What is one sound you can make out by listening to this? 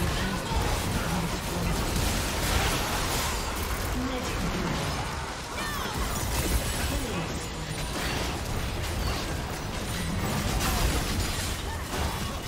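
Magic blasts and combat effects crackle and boom in rapid bursts.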